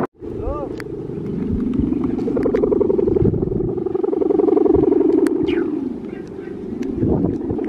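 A kite's hummer drones with a wavering, buzzing tone overhead.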